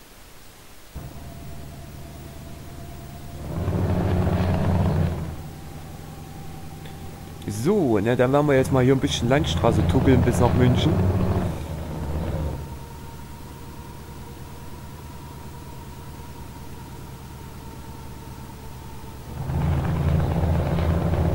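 A truck engine rumbles steadily and swells louder now and then.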